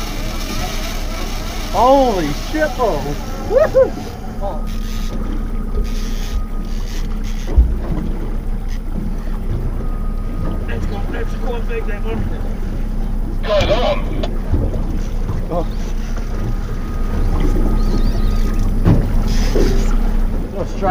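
A boat's engine hums steadily.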